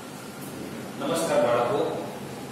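A man speaks into a clip-on microphone, heard through a loudspeaker in an echoing room.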